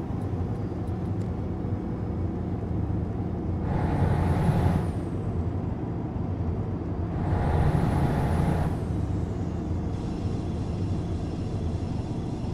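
A truck engine drones steadily at low revs.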